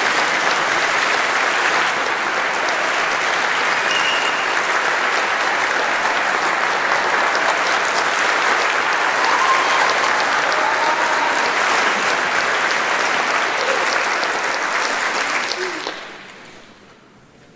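An audience applauds loudly in a large echoing hall, then the clapping dies away.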